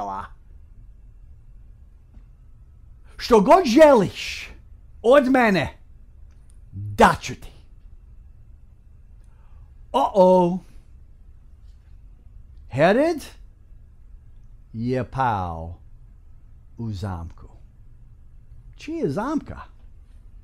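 A middle-aged man speaks with animation into a close microphone, in short bursts with pauses.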